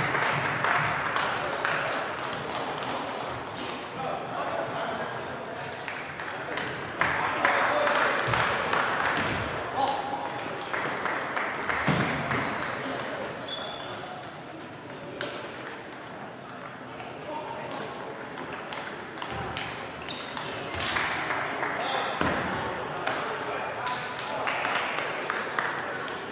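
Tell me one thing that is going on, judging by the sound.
Table tennis balls click on tables and paddles throughout a large echoing hall.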